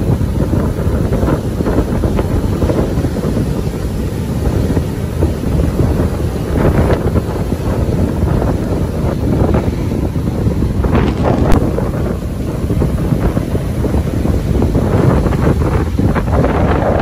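Waves crash and roar steadily onto the shore.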